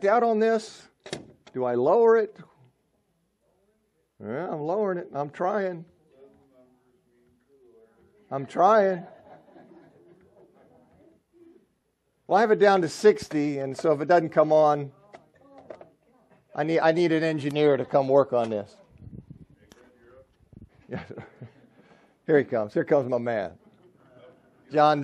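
An older man speaks calmly and clearly, as if addressing a room.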